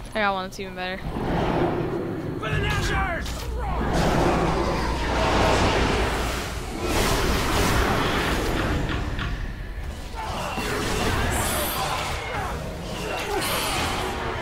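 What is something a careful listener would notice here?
Game combat sounds of blows and crackling spells clash loudly.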